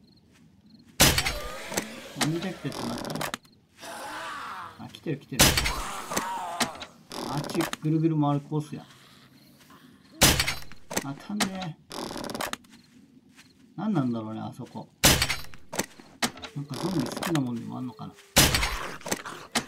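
A crossbow fires with a sharp thwack, again and again.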